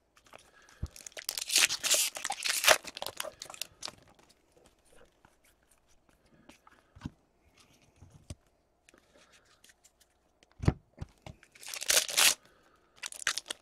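Plastic wrapping crinkles as a pack is torn open.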